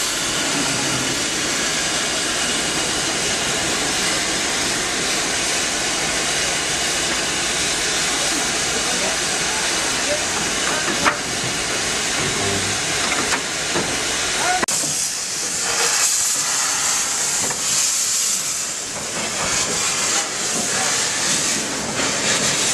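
A steam locomotive engine rumbles steadily.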